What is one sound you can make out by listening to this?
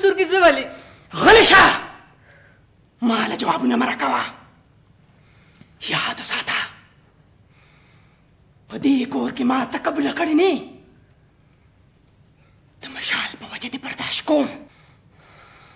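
An elderly woman speaks sharply and angrily.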